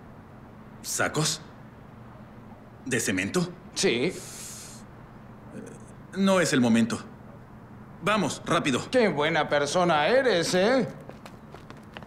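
A young man speaks with agitation nearby.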